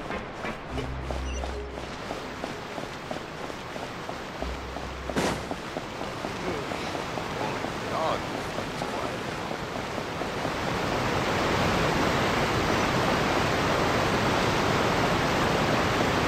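Quick footsteps patter on stone.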